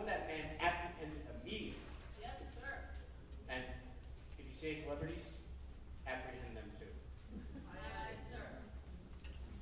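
A man speaks loudly on a stage, heard from afar in a large hall.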